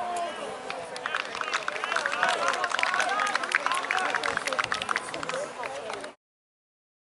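Spectators cheer and clap from the sideline.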